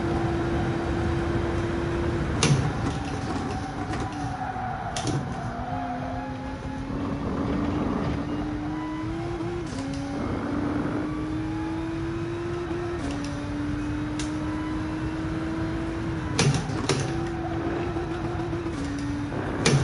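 A racing car's engine drones steadily, its pitch dropping sharply at each gear change.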